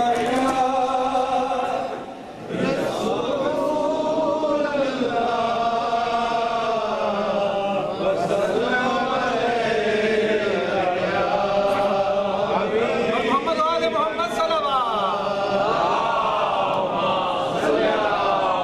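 A young man chants a mournful recitation into a microphone, heard through a loudspeaker in an echoing hall.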